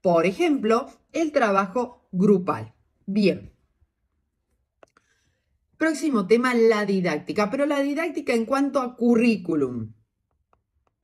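A woman speaks calmly and explains, close to a microphone.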